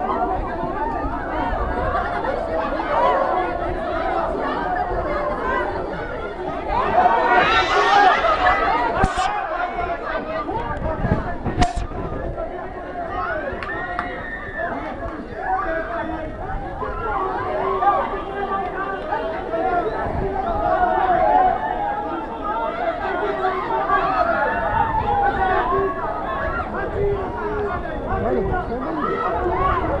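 A large crowd chants and sings loudly together.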